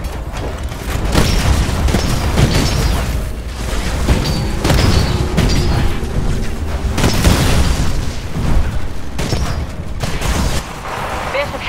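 Heavy gunfire booms and rattles in rapid bursts.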